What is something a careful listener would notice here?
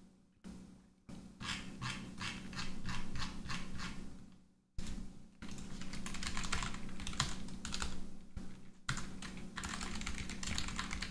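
Keys clatter rapidly on a computer keyboard.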